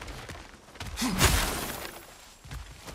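A wooden barricade smashes and splinters under a heavy blow.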